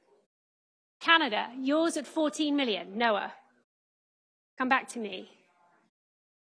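A woman auctioneer calls out loudly and with animation through a microphone.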